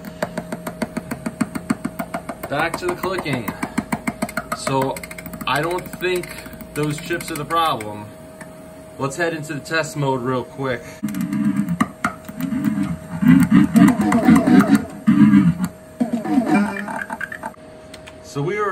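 An arcade game plays electronic sounds through its loudspeakers.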